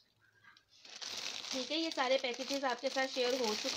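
Plastic wrappers rustle and crinkle.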